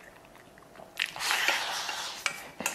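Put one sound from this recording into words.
A man slurps broth from a bowl.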